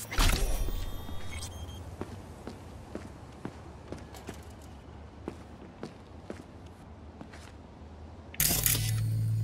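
Footsteps tread slowly on gritty ground.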